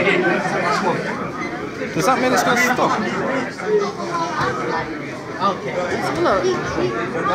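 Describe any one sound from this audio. Several people talk at once nearby.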